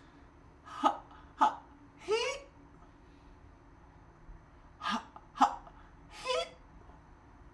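A young man shouts loudly with his hands cupped around his mouth.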